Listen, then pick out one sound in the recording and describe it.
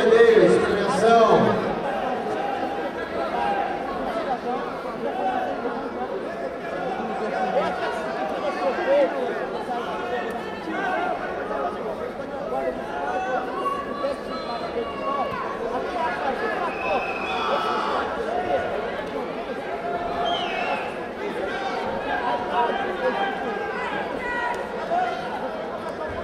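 Several men shout and chatter loudly nearby in a large echoing hall.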